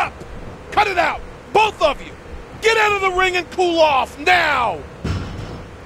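A man shouts angrily at close range.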